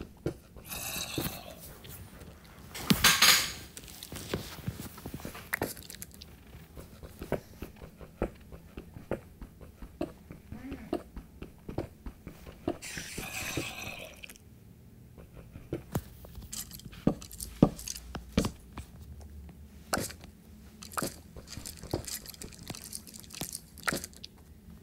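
Blocks break with short crunching thuds as a pickaxe digs.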